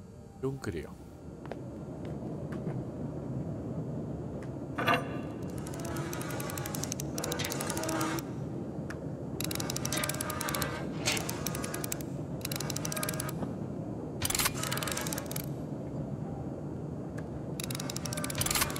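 A heavy metal valve wheel creaks and grinds as it turns.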